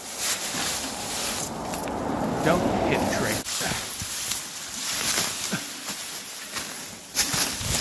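Dry grass and branches rustle and scrape.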